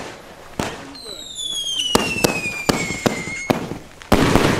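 A firework rocket whistles as it shoots up.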